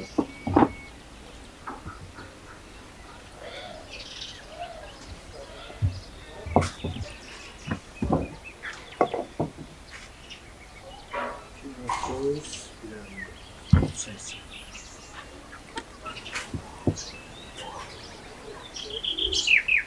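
Light knocks and taps sound on a wooden table.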